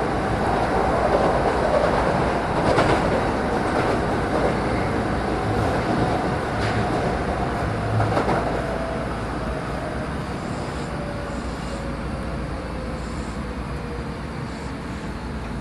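A train's motor whines with a slowly falling tone.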